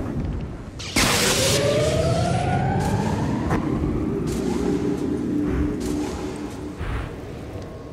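Energy blades hum and swoosh.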